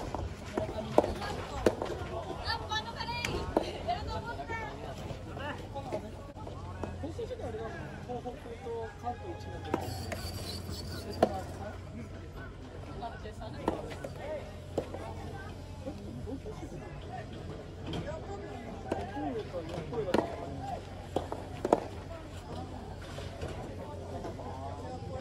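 Young players call out and shout from a distance.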